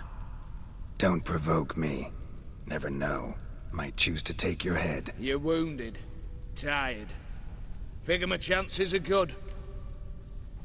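A man speaks calmly and with confidence.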